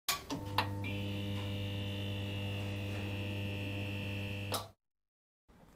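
A neon sign hums and buzzes steadily.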